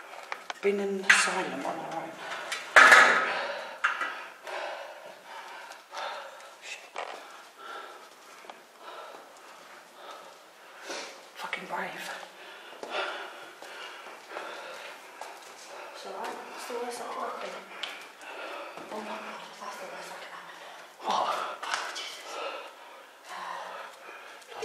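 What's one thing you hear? Footsteps scuff on concrete stairs in an echoing stairwell.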